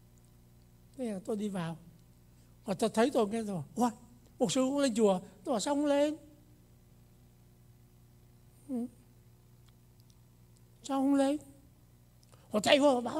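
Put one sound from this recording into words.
An elderly man speaks slowly and calmly into a microphone over loudspeakers in an echoing hall.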